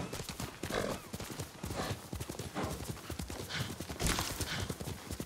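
Horse hooves thud rapidly in a fast gallop over grass.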